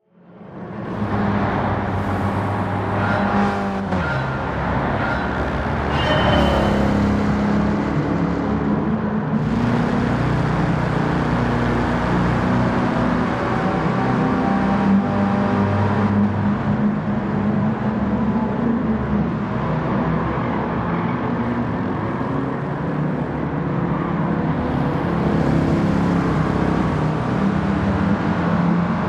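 Small car engines buzz nearby.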